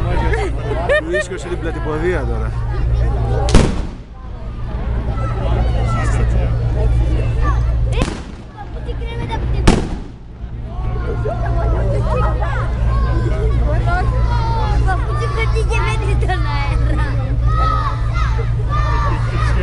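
Sparks hiss and crackle from a burning firework.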